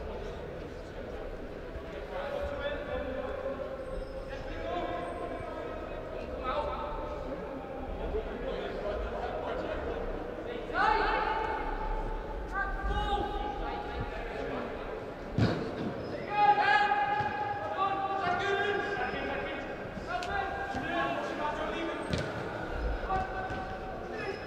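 Young players shout to each other across a large echoing hall.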